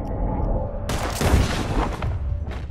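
A gunshot cracks loudly.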